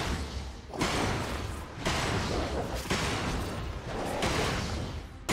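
Magic spells whoosh and crackle in loud bursts during a fight.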